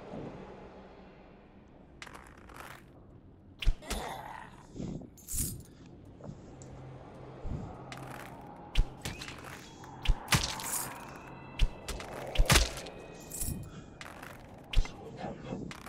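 Bowstrings twang as arrows are loosed.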